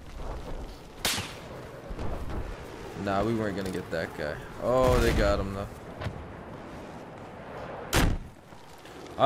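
A rocket launcher fires with a sharp blast.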